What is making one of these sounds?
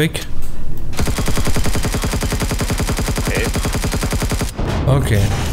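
An automatic gun fires rapid bursts.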